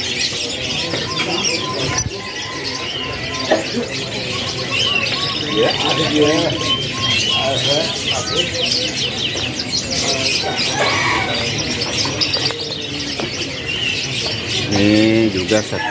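Many small caged birds chirp and trill busily, close by.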